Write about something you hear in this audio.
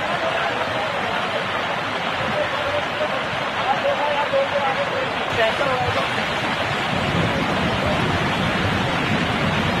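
Floodwater rushes and roars loudly nearby.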